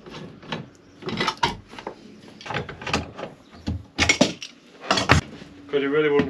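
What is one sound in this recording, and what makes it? Metal clamps clank and rattle.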